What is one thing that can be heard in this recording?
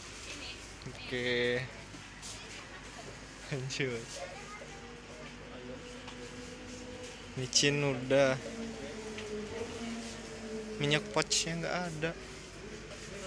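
A young man speaks in short bursts close by.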